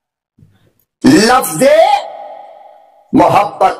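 An elderly man speaks forcefully into a microphone, heard through loudspeakers.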